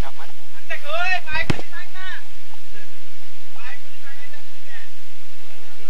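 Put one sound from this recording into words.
Young men shout and call out from a distance outdoors.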